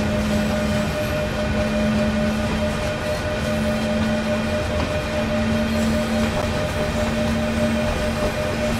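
An electric locomotive hums steadily as a train rolls along the rails.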